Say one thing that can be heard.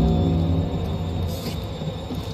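A lightsaber hums.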